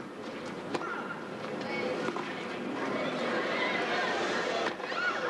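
A tennis ball is struck with a racket with sharp pops.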